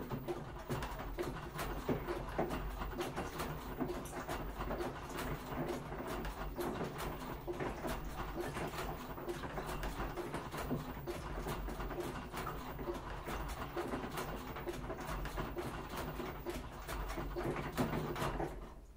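A front-loading washing machine churns laundry with a low rumble.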